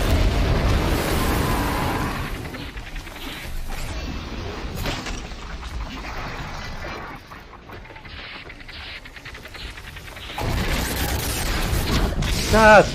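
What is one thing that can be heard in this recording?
Explosions boom and roar loudly.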